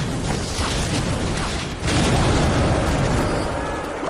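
A fireball whooshes and bursts with a boom in a video game.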